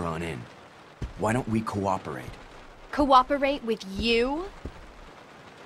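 A young woman answers with surprise.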